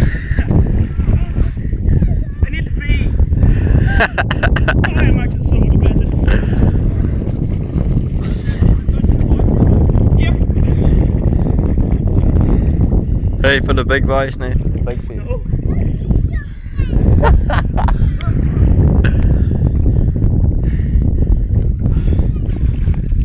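Water splashes as people swim.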